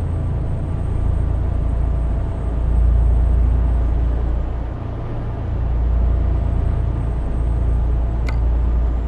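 Tyres roll on a road.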